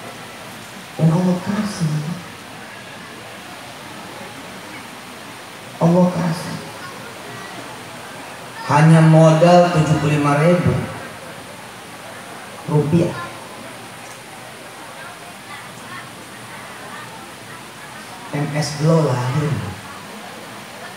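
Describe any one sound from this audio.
An elderly man speaks calmly into a microphone through a loudspeaker, in short phrases with pauses.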